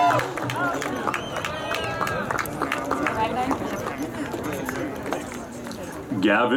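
A crowd of men and women cheers and shouts outdoors.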